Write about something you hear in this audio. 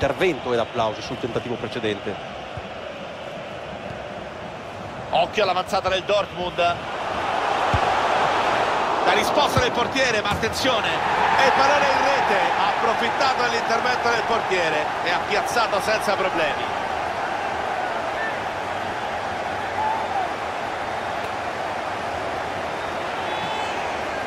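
A large stadium crowd roars and cheers, swelling loudly and then slowly settling.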